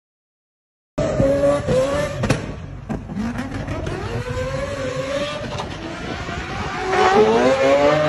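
Car engines roar and rev up and down in bursts.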